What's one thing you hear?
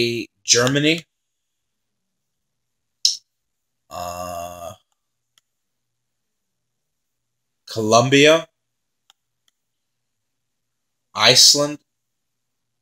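A young man speaks in short bursts, close to a microphone, with long pauses.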